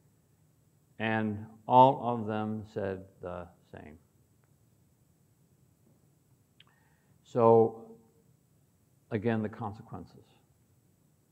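An older man speaks with animation in a large room, pausing between phrases.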